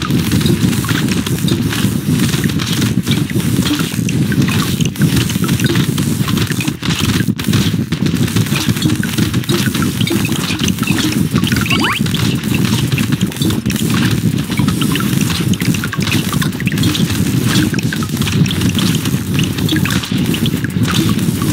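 Game monsters burst with quick squelching hits.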